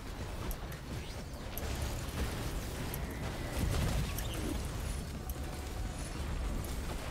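Energy blasts boom and rumble.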